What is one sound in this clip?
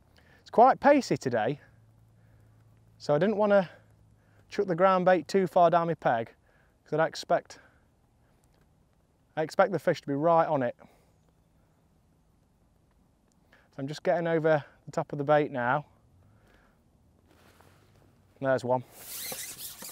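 A young man talks calmly and close by into a microphone.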